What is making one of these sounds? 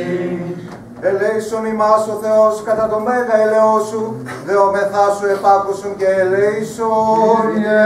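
A man chants quickly through a microphone.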